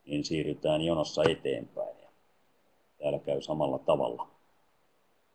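A middle-aged man speaks calmly through a headset microphone over an online call.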